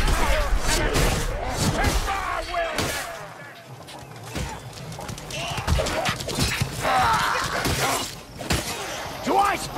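Blades slash and thud in quick blows.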